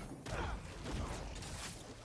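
A monstrous creature snarls and growls.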